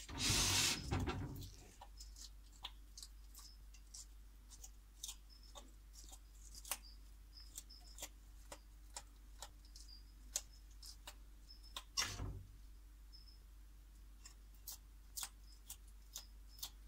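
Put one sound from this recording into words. A lizard crunches and chews on a leafy green close by.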